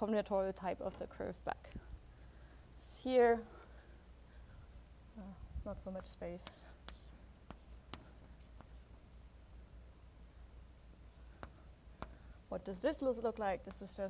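A woman lectures calmly.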